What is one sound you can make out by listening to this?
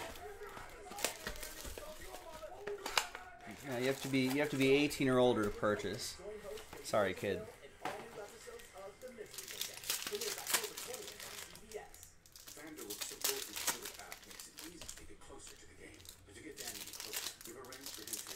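Foil packs crinkle and tear open.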